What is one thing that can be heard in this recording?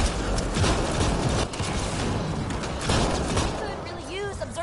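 A loud blast booms and crackles.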